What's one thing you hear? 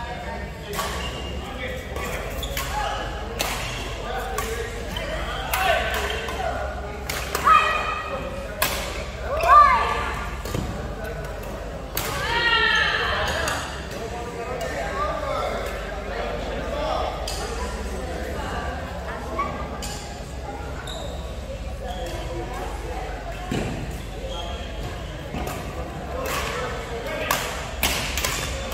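Rackets hit a shuttlecock with sharp pops.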